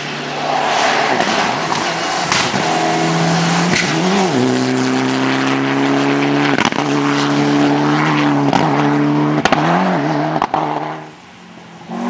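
A rally car engine roars loudly at high revs.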